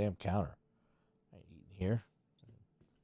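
A man speaks loudly and briefly into a close microphone.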